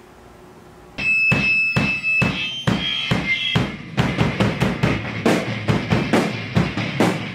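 Drums and cymbals are played hard and fast.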